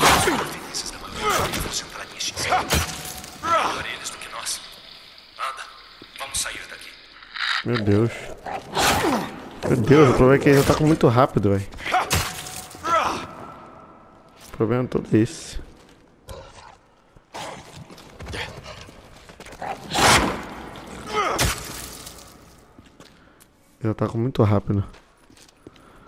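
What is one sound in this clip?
A blade slashes and strikes with heavy thuds.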